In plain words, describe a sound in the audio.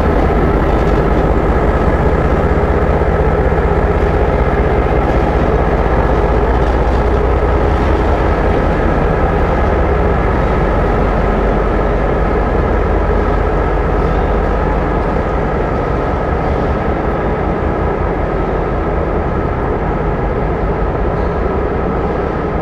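A diesel locomotive engine idles with a loud, steady rumble that slowly fades a little.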